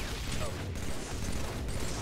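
An explosion crackles with electric zaps.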